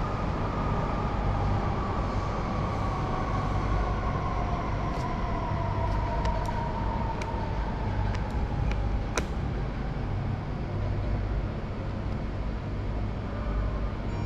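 An elevator hums steadily as it travels in its shaft.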